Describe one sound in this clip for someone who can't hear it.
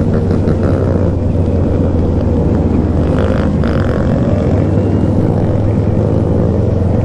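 A motorcycle engine hums loudly and steadily up close.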